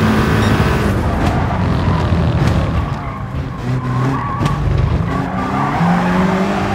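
A race car engine drops low and burbles as the car slows hard into a corner.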